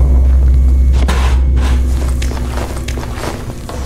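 A metal case clicks open and items rattle inside.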